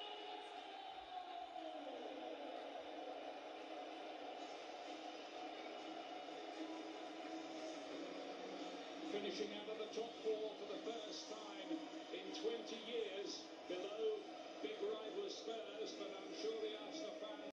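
A large crowd cheers and roars through a television speaker.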